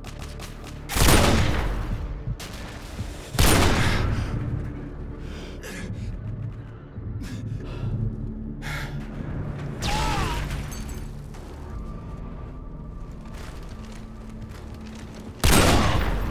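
Sniper rifle shots boom loudly with a ringing echo.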